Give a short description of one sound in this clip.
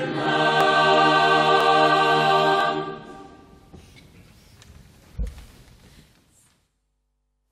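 A choir sings together in a large echoing hall, then the sound slowly dies away.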